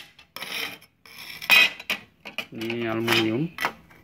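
A thin metal sheet scrapes across a hard bench.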